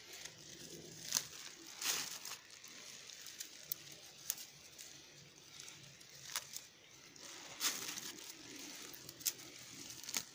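A hand snaps dry twigs.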